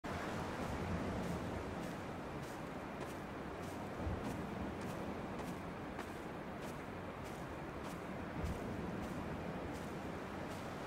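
Wind blows outdoors across an open hillside.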